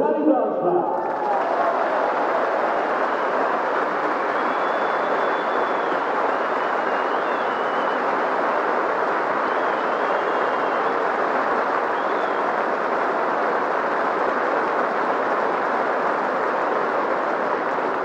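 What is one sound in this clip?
A large crowd cheers and applauds loudly in an open stadium.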